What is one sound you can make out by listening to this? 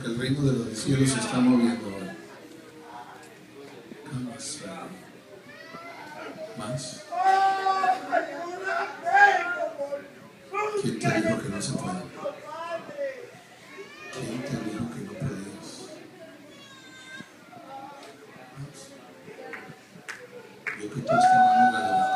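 A crowd of men and women sings and calls out loudly in a large echoing hall.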